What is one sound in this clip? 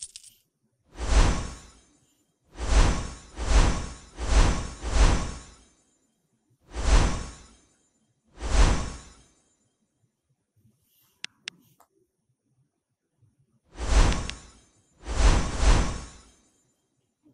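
Soft whooshing game sound effects play in bursts as pieces are moved.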